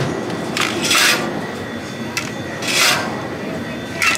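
A drink can clinks against other cans.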